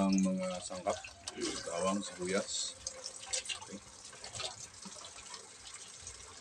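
A hand swishes and stirs liquid in a metal pan.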